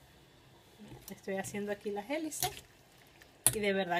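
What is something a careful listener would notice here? A spoon stirs and scrapes in a pot of soup.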